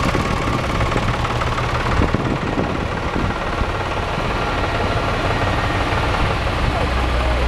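A heavy truck engine rumbles as the truck rolls slowly closer.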